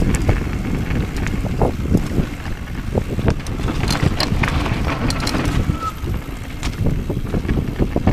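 Bike tyres crunch and rattle over a rough dirt trail.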